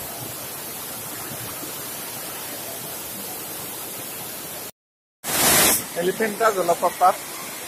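A waterfall rushes and splashes nearby.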